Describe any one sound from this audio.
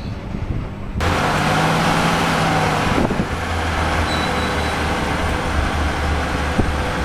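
A train rumbles and hisses loudly as it passes close by.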